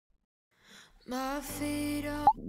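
A song with singing plays.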